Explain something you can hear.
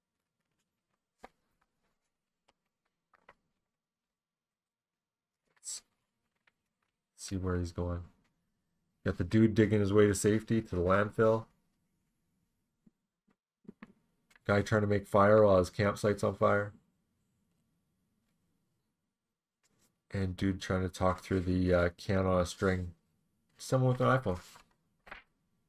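Paper pages rustle as they are handled and turned.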